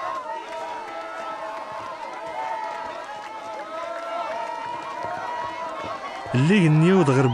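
A crowd cheers and sings joyfully outdoors.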